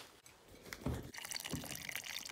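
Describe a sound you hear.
Water pours from a dispenser into a bowl.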